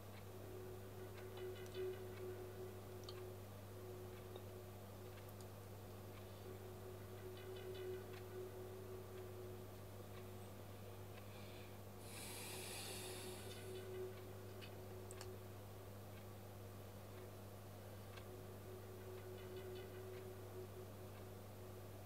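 A young woman speaks softly, heard through a television.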